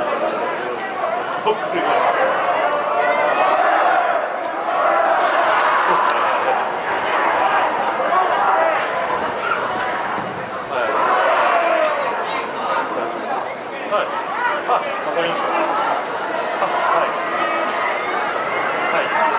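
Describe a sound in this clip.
Young men shout and call out to each other across an open outdoor pitch.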